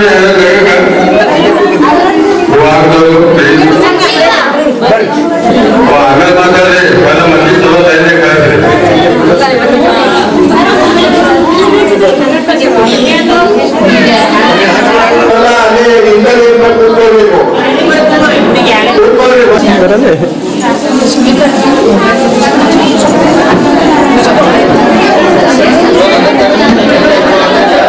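A group of women and men sing a song together nearby.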